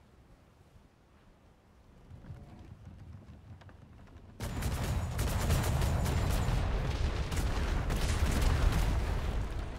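Stormy sea waves crash and roar.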